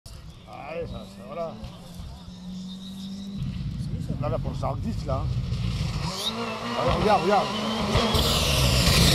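A rally car engine roars and revs hard as the car approaches.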